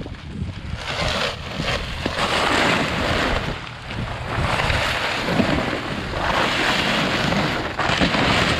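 A plastic tarp rustles and crinkles as it is pulled back.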